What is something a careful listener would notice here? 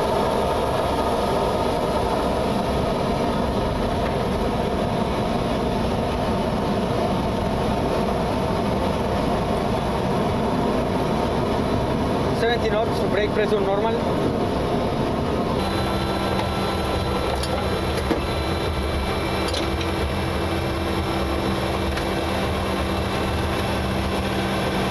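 Jet engines roar steadily as an airliner rolls along a runway.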